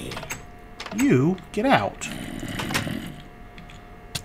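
A door clicks open.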